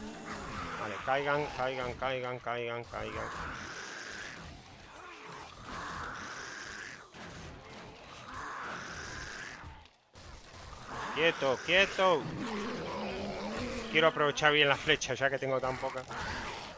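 Zombies growl and snarl nearby.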